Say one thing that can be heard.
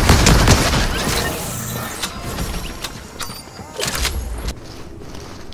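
Gunshots crack in quick bursts from a video game.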